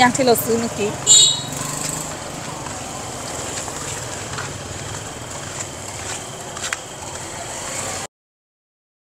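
Motorbike engines hum along a busy street outdoors.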